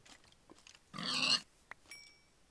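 A pig grunts.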